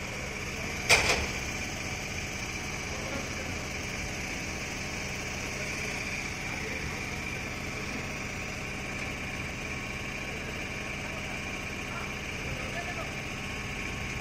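An engine hums steadily with a high whine.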